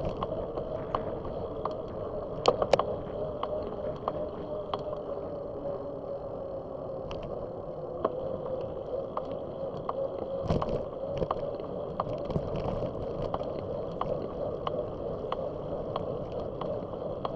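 A bicycle chain clicks and ticks as the wheels roll.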